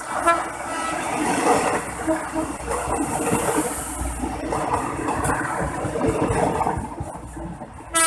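A train rumbles past close by, its wheels clattering on the rails.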